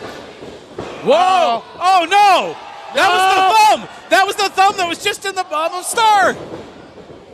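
A crowd chants loudly in rhythm.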